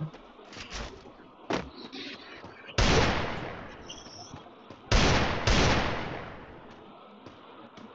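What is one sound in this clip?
Gunshots crack from a pistol in short bursts.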